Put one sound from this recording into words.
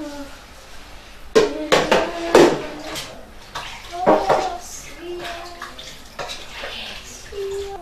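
A young man sings close by.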